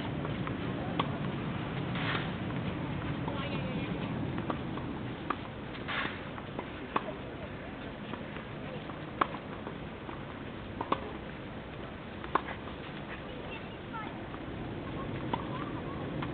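Tennis balls are hit sharply with rackets.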